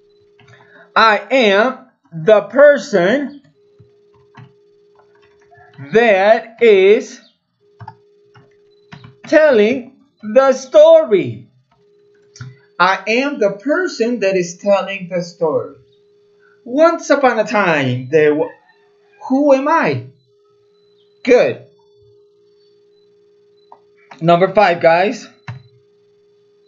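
A man speaks slowly and clearly close to a microphone, in short phrases with pauses.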